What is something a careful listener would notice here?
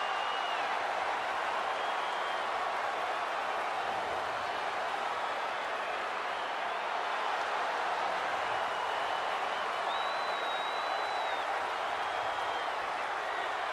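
A crowd whistles loudly now and then.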